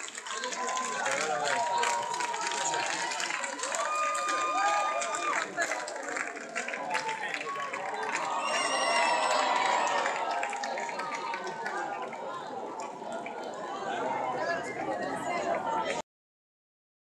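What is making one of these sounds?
A large crowd cheers, whistles and claps loudly at a concert.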